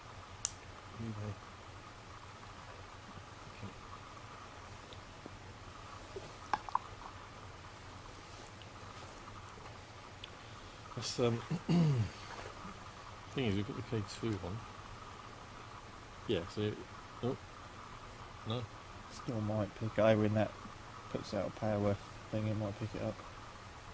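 A second man speaks quietly in reply.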